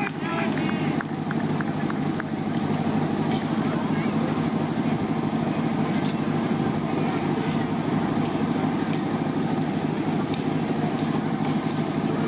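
Metal hose couplings clatter and knock as hoses are joined.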